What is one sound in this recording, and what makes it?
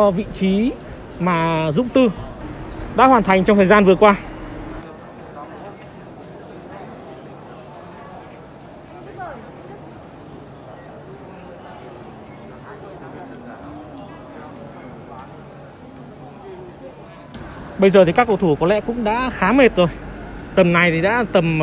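Young men chat quietly in a large echoing hall.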